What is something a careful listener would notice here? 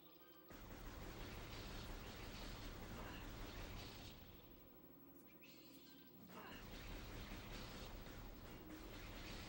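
Laser gunfire and explosions blast loudly in a video game.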